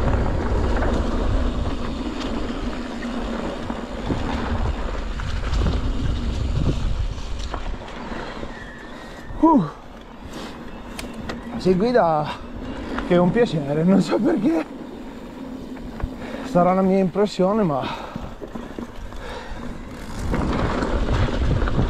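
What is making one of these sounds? Bicycle tyres roll and crunch over dry leaves and dirt.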